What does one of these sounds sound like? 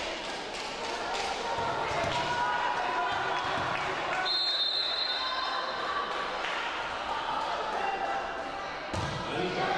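Players' shoes squeak on a hard court in a large echoing hall.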